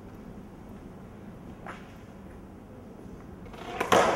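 Skateboard wheels roll over smooth pavement.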